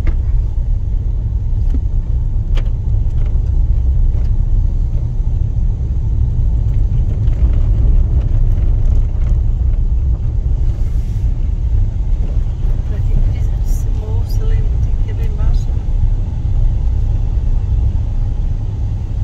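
Tyres rumble steadily over a gravel road.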